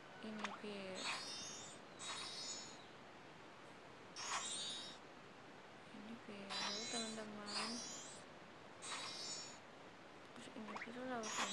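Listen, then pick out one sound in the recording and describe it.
Sparkly chimes twinkle in short bursts.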